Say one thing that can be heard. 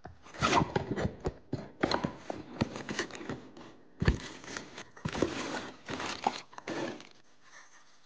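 Cardboard flaps rustle and scrape as a small box is opened.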